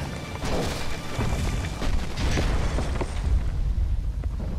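A building collapses with a loud, deep rumbling crash.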